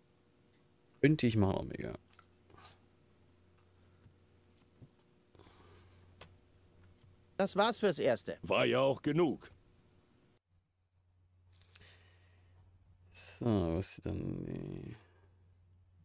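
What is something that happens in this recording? A man speaks casually and with animation into a close microphone.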